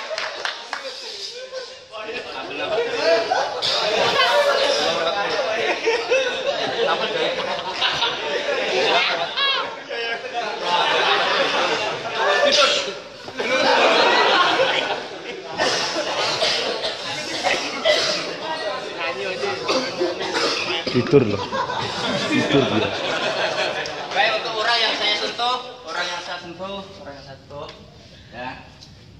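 Young men laugh loudly nearby.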